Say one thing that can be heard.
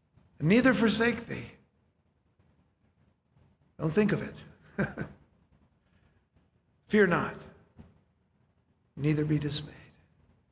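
A middle-aged man speaks with animation in short bursts through a microphone.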